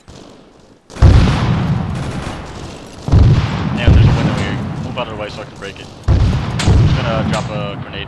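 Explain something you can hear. Gunshots boom and echo loudly in a large metal hall.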